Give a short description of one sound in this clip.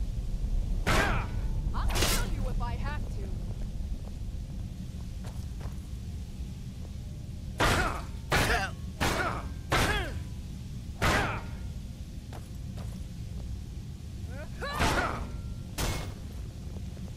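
Swords strike and clash in sharp, repeated blows.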